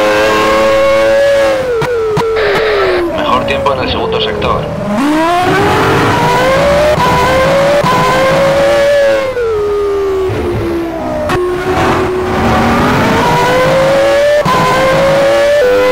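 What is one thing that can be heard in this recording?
A racing car engine screams at high revs, dropping in pitch as it slows for corners and rising again as it speeds up.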